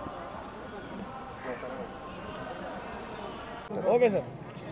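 Men talk in a bustling crowd outdoors.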